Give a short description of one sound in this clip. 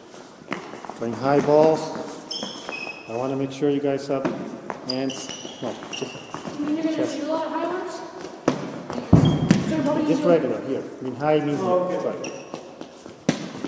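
A young boy talks loudly in an echoing hall.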